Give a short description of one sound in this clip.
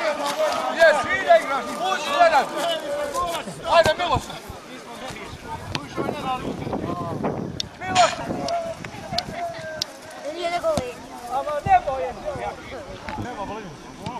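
Men shout and call out with animation outdoors.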